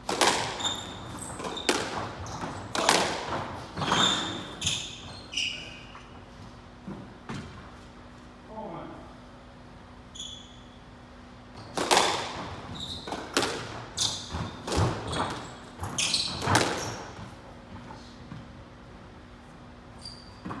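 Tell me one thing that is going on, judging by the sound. Shoes squeak on the wooden floor.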